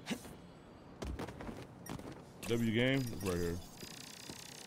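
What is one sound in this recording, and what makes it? A young man talks excitedly into a microphone.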